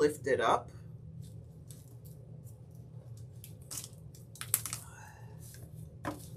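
A thin plastic stencil crinkles as it is peeled up.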